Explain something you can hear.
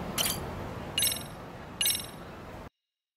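Short electronic menu chimes beep.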